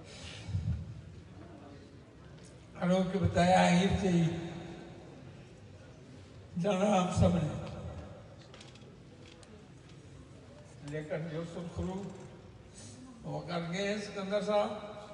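An elderly man speaks slowly and with feeling into a microphone, heard through loudspeakers outdoors.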